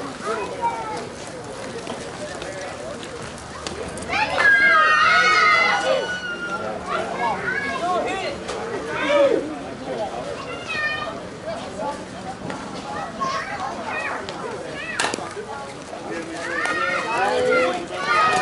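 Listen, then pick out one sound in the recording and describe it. Men talk with each other nearby.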